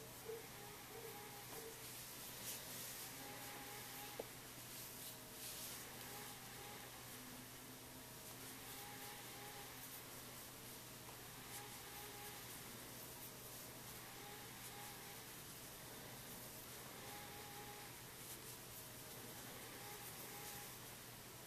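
Yarn rustles softly as a crochet hook pulls it through stitches.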